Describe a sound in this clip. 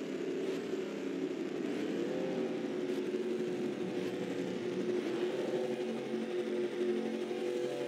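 Many race car engines drone and whine steadily as the cars pass.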